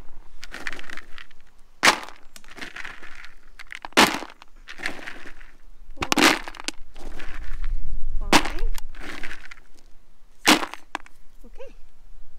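Dry pellets rustle and clatter as a hand scoops them into a plastic bucket.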